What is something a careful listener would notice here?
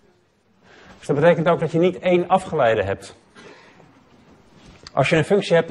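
A man lectures calmly into a microphone, with pauses.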